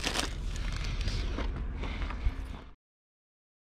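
A car door swings shut with a thud.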